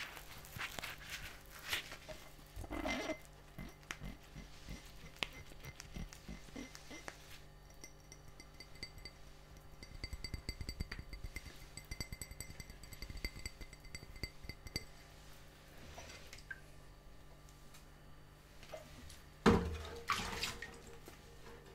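A glass clinks and squeaks against a hand.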